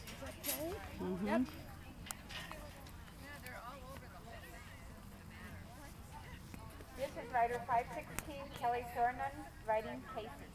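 A horse's hooves thud softly on loose dirt.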